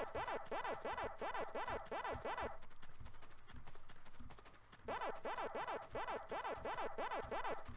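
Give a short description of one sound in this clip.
A video game plays a rapid, repeating wobbling chomp sound.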